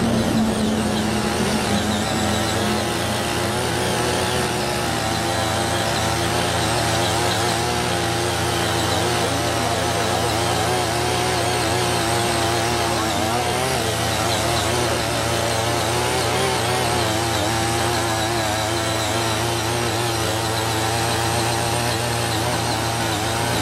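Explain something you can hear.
A small engine of a walk-behind tiller runs steadily up close.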